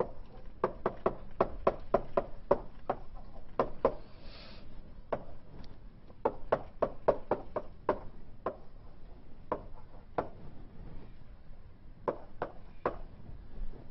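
Chalk taps and clicks sharply against a blackboard.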